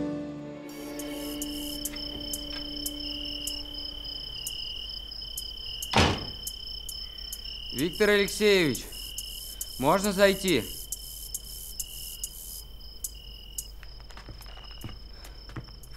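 Crickets chirp steadily close by.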